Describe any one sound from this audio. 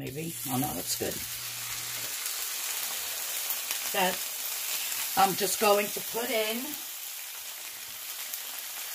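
Chicken sizzles in hot oil in a pan.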